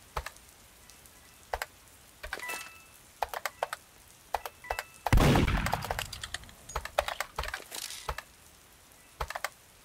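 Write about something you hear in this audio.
Footsteps tap in quick bursts on a hard floor.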